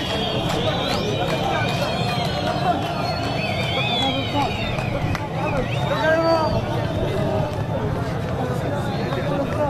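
A large crowd shouts and chants loudly close by, outdoors.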